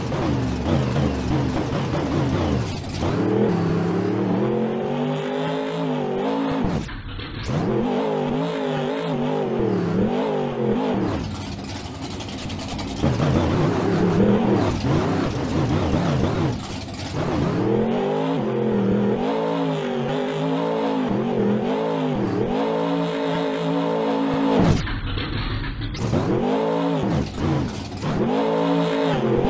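A monster truck engine roars and revs up and down.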